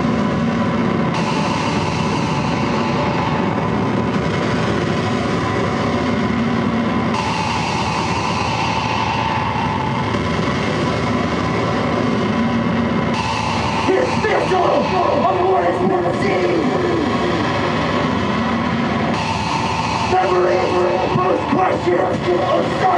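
Loud electronic music plays through loudspeakers.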